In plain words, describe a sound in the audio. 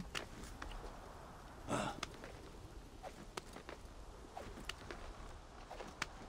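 Hands scrape and grip on a stone wall while climbing.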